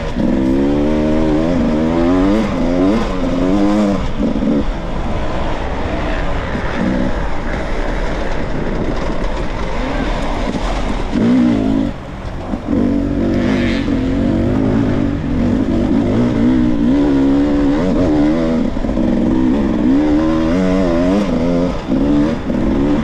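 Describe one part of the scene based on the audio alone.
Tyres crunch over dry leaves and dirt.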